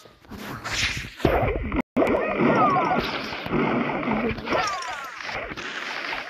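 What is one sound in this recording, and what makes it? Cartoonish gunshots and blasts pop rapidly.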